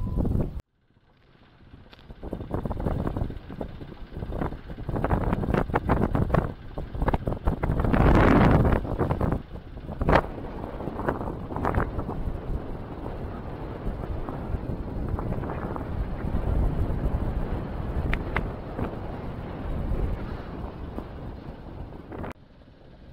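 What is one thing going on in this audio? Water splashes and rushes against a boat's hull.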